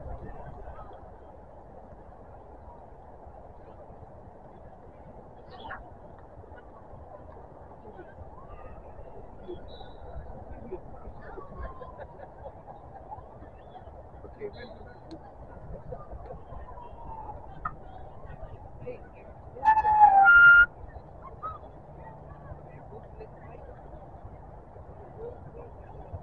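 Distant players and spectators call out faintly across a field.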